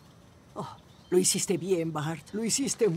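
An elderly woman speaks close by.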